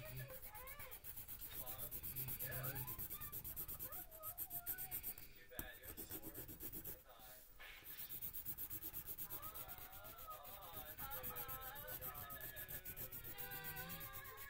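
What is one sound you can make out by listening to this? A pencil scratches rapidly across paper.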